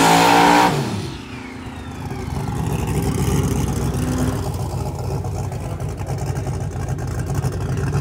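Tyres squeal and hiss on the track during a burnout.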